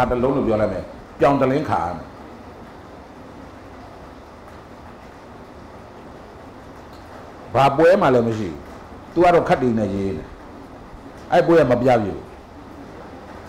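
A middle-aged man reads out in short phrases with pauses, through a handheld microphone.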